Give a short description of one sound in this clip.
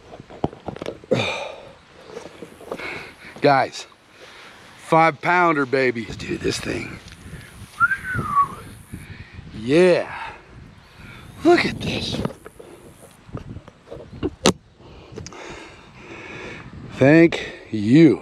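A middle-aged man talks with animation close to a microphone.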